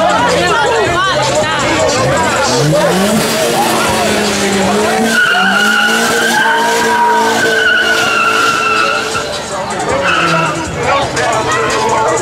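A crowd of young men and women shouts and cheers loudly outdoors.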